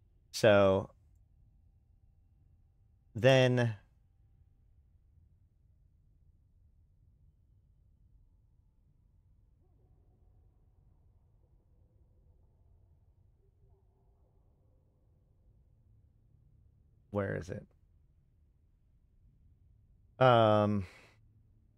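A man speaks calmly in short bursts close to a microphone.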